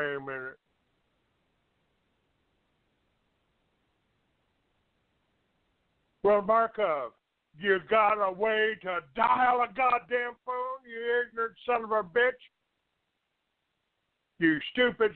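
An older man talks with animation over a phone line.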